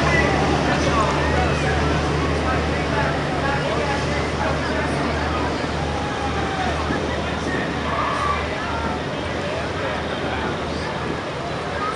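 A boat engine rumbles steadily and slowly fades as it moves away.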